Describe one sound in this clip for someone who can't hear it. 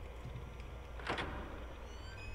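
A door handle rattles and a door creaks open.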